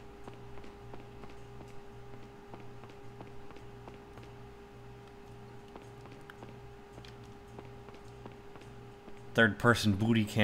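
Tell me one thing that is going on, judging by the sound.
Footsteps tap steadily on a hard stone floor.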